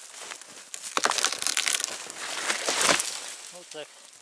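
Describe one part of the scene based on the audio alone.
A falling tree crashes through branches into snow.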